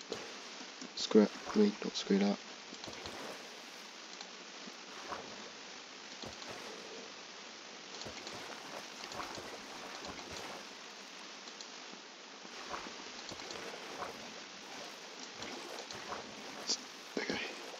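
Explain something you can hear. Water swishes and splashes.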